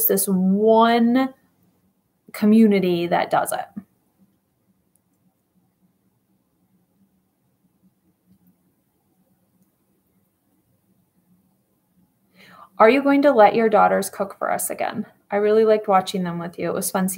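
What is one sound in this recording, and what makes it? A woman speaks calmly and closely into a microphone, with pauses.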